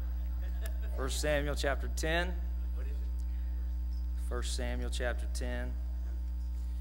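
A man speaks slowly and solemnly into a microphone.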